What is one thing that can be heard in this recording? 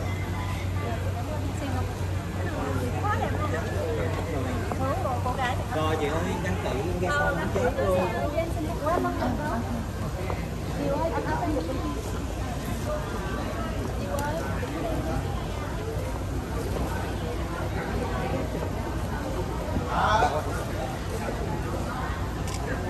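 Several people chatter in the background.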